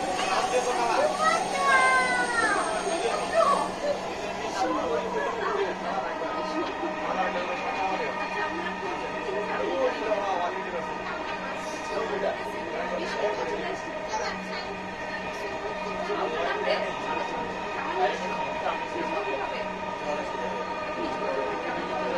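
A train rumbles and hums steadily along its track.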